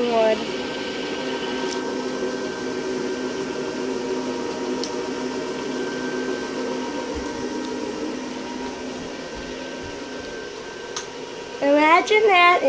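An electric blower fan hums steadily.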